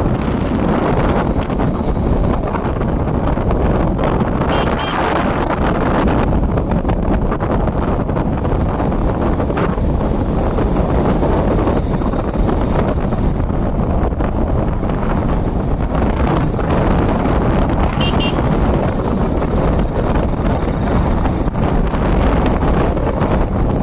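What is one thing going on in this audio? A motorbike engine hums steadily while riding along.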